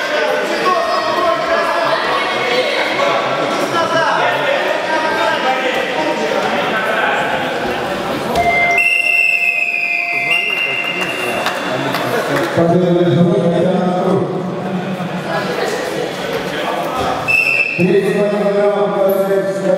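Spectators talk and call out in an echoing hall.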